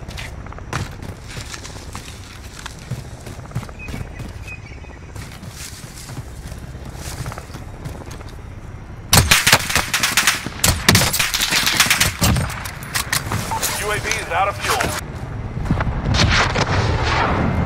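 Footsteps crunch over dry ground.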